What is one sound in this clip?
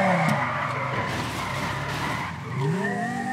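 Tyres screech as a car skids.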